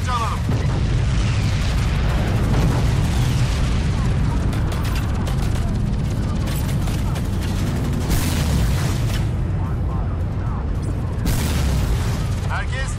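A helicopter's rotor and engine roar steadily.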